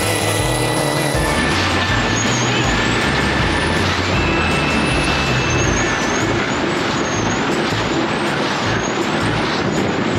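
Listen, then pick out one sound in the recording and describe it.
Water sprays and rushes against a speeding boat.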